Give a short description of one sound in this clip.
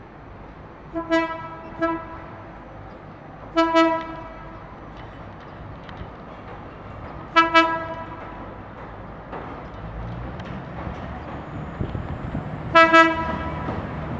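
A train horn blares in several loud blasts.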